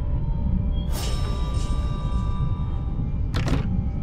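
A bright magical chime rings out and fades.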